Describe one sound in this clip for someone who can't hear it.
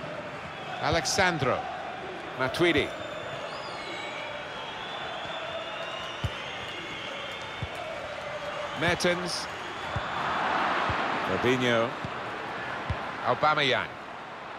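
A large crowd murmurs steadily across a stadium.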